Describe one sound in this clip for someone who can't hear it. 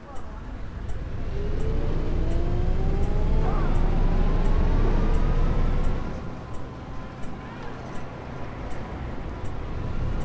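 A turn signal ticks steadily.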